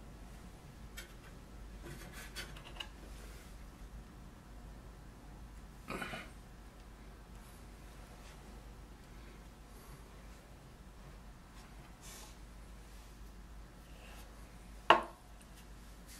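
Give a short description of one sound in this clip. Small tools and a wooden board knock together now and then.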